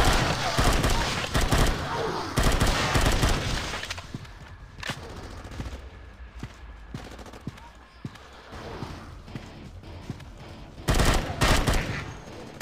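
An automatic rifle fires rapid bursts of gunshots.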